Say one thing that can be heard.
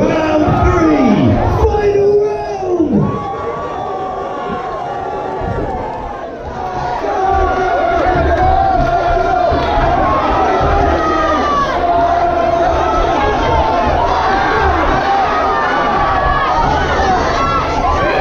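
Boxing gloves thud against a body and head.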